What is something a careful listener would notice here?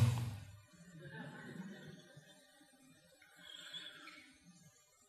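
An elderly man laughs softly.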